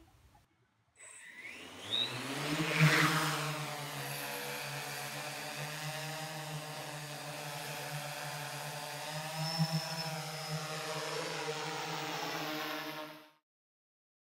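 A drone's propellers whir with a steady buzzing hum as it lifts off and hovers.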